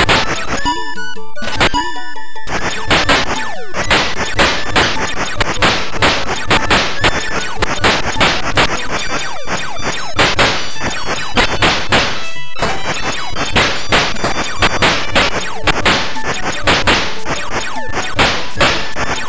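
Arcade game music plays with fast beeping tones.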